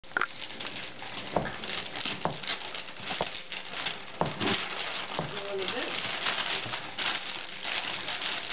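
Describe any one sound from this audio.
A cardboard box rustles and scrapes.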